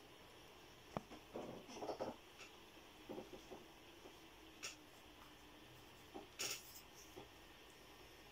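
A pencil scratches and taps on paper in short bursts.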